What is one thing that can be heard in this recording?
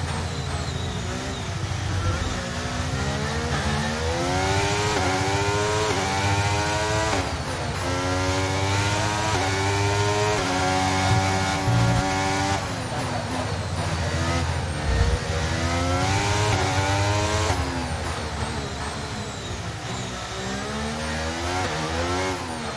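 A racing car engine screams, rising and falling in pitch as gears shift.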